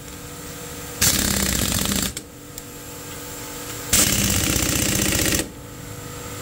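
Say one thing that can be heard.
An impact wrench whirs loudly in two short bursts.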